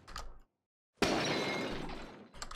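A clay pot shatters.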